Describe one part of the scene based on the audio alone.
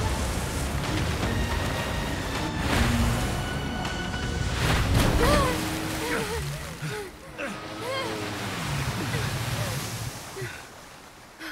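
A jet ski engine roars across the water.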